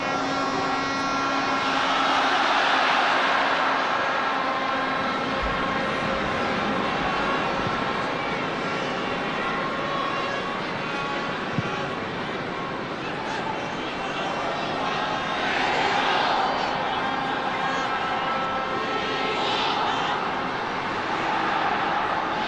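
A large crowd murmurs and cheers in an open stadium, swelling at times.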